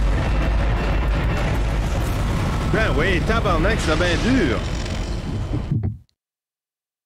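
A loud explosion booms and fades.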